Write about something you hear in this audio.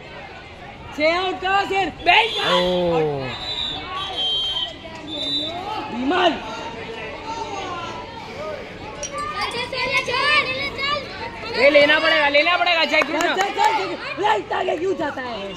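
A crowd of children shouts and cheers outdoors.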